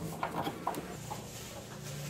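A screwdriver scrapes as it turns a screw.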